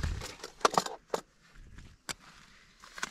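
Fabric rustles and brushes very close by.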